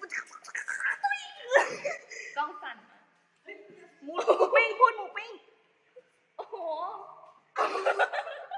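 A young woman talks and laughs with animation, close by.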